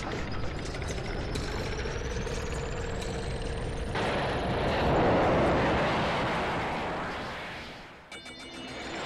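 A rocket engine roars during liftoff and fades into the distance.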